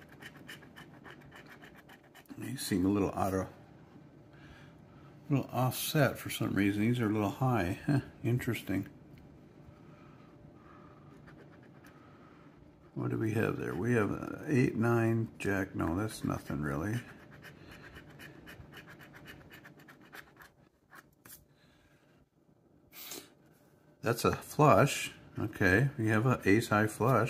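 A coin scratches across a card with a dry rasping sound.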